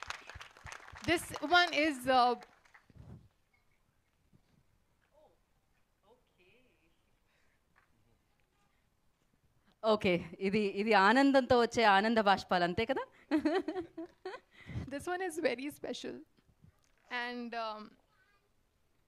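A young woman speaks emotionally through a microphone.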